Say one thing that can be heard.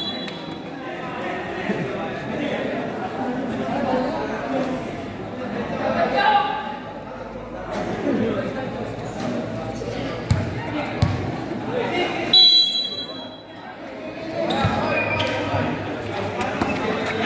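A crowd of young spectators chatters and shouts outdoors.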